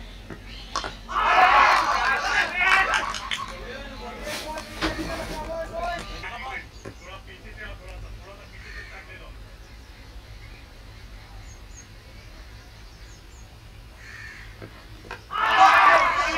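A bat strikes a cricket ball with a sharp knock.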